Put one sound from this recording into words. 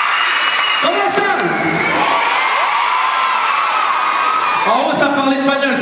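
A crowd of young girls screams and cheers loudly in a large hall.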